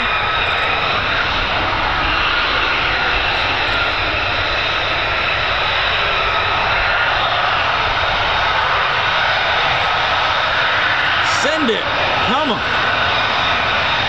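A jet engine roars and whines steadily as a fighter jet taxis close by.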